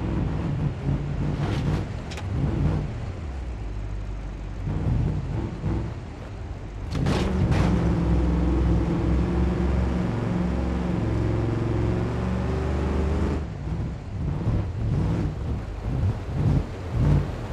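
Tyres crunch and rattle over loose stones.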